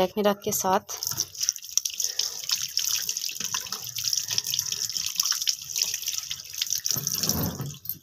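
Water runs from a tap and splashes into a sink.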